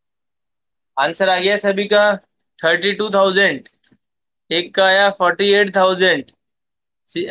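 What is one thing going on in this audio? A man speaks calmly, close to a phone microphone.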